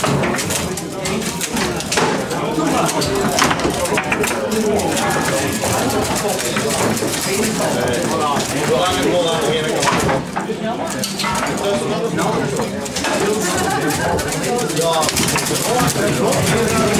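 A foosball ball clacks sharply against the players and walls of the table.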